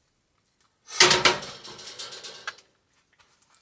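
A frying pan clanks down onto a camp stove grate.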